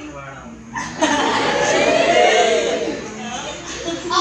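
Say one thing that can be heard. An audience laughs and cheers loudly.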